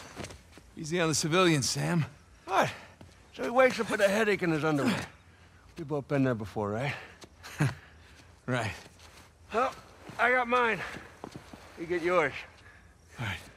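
A second man answers with a wry tone.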